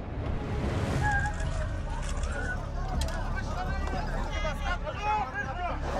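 A crowd of men shout in alarm close by.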